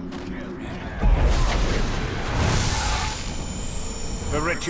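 A magical blast surges with a loud rushing whoosh.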